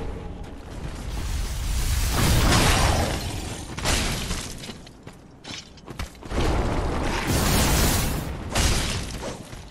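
Ice crystals burst and shatter with a loud roar.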